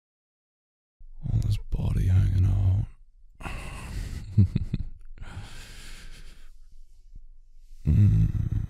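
A young man speaks in a low, teasing voice close to a microphone.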